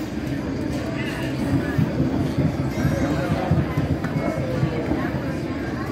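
Dice rattle and tumble inside a plastic dome.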